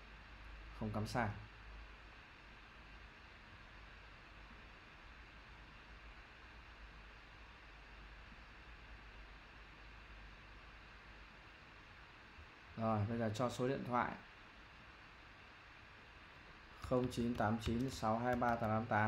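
A young man speaks calmly into a microphone, close by, in short bursts.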